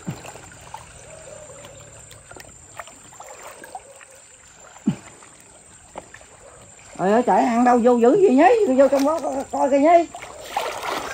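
Water sloshes around people wading through it.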